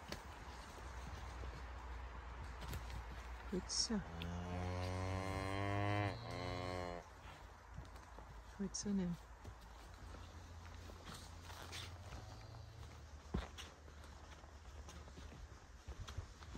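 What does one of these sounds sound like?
Hooves shuffle and thud on the soft forest floor.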